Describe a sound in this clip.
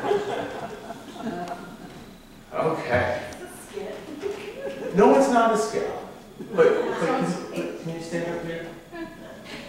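Women talk nearby.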